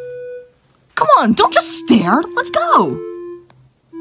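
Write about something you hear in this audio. A man speaks in a strained, frightened cartoon voice close to the microphone.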